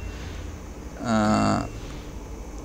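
A countdown tone beeps once.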